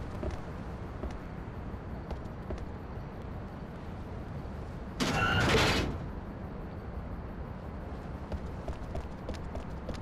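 Footsteps run across pavement.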